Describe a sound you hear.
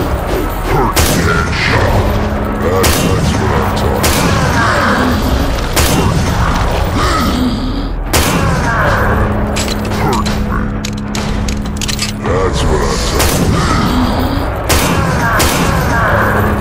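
A handgun fires single loud shots.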